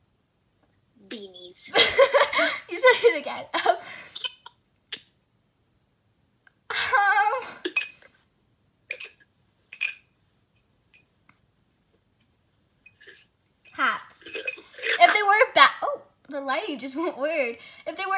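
Young girls talk and laugh over an online call.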